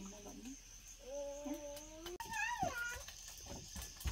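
A small child babbles nearby.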